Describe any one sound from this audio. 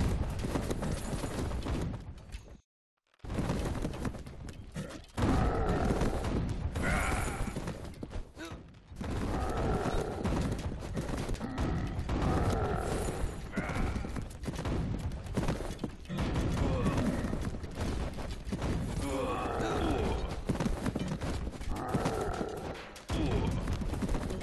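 Swords and weapons clash rapidly.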